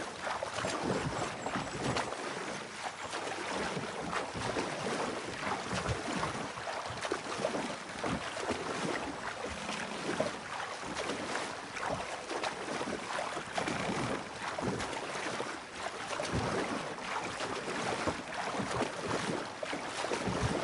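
Water laps gently against a small wooden boat.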